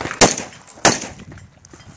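Rifle shots crack loudly outdoors.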